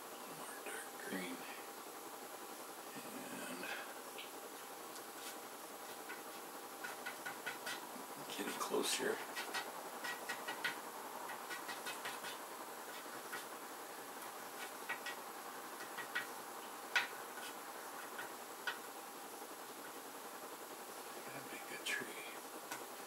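A painted board taps and rattles softly as a hand handles it.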